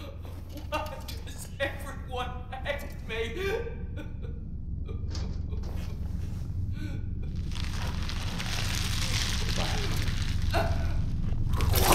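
An elderly woman speaks in a trembling, pleading voice.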